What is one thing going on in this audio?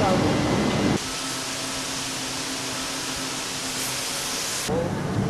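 Factory machines hum steadily.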